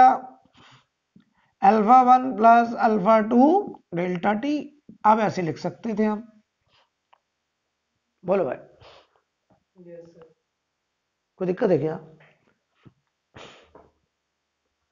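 A man explains calmly, close by, in short bursts with pauses.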